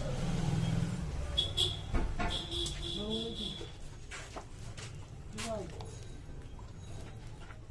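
Liquid plaster pours and splashes from a bucket.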